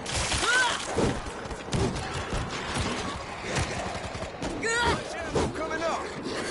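Heavy blows land with dull thuds in a fight.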